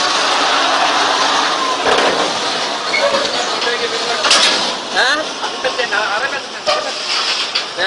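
A heavy truck engine rumbles as the truck drives slowly past close by.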